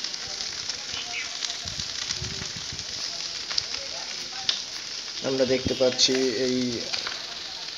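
Dry brush crackles and pops as it burns.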